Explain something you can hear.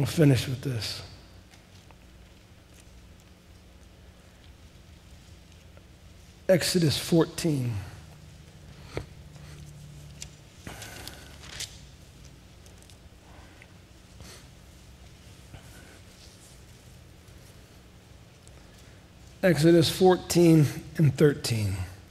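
A middle-aged man speaks slowly through a headset microphone, with long pauses, in a large echoing hall.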